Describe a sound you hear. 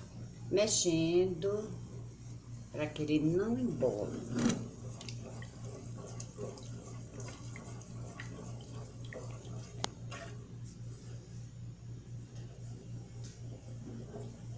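A wooden spoon stirs and scrapes inside a metal pot.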